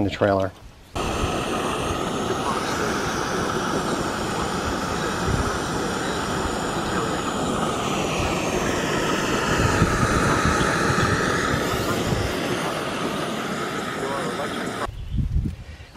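A gas camping stove burner roars steadily.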